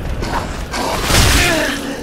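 A blade swings through the air with a whoosh.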